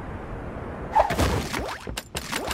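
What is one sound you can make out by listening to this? A landing thuds.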